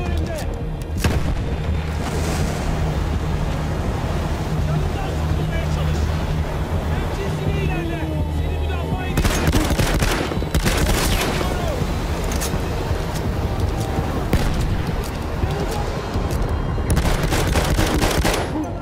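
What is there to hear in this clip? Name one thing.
A flamethrower roars in loud bursts.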